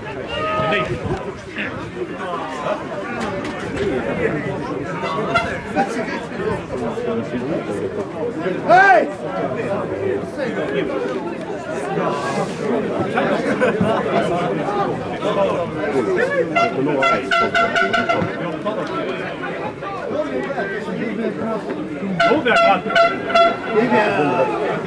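A crowd of spectators chatters nearby.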